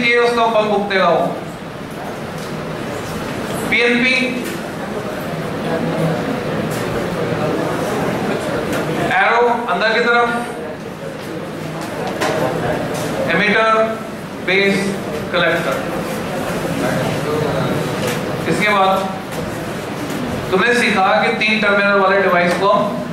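A group of children recite loudly in unison in an echoing room.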